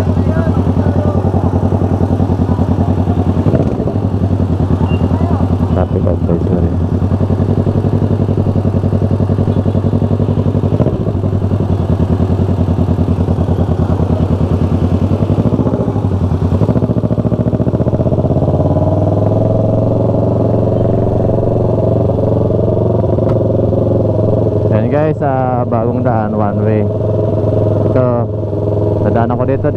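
A motorcycle engine rumbles steadily close by, rising in pitch as it speeds up.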